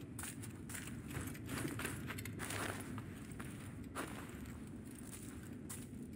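Footsteps scuff on a sandy stone floor.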